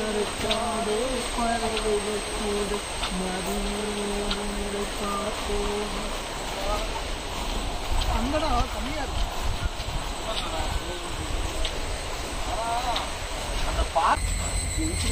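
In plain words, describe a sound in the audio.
Footsteps tread on a metal footbridge.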